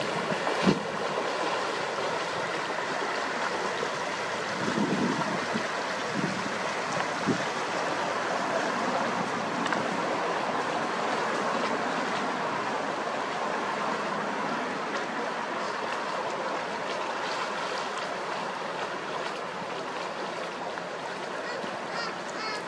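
A boat engine hums nearby.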